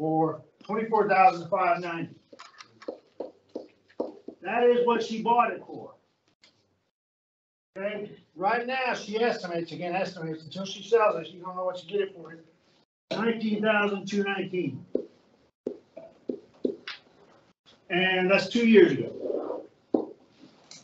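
A middle-aged man speaks clearly and steadily, as if explaining to a class.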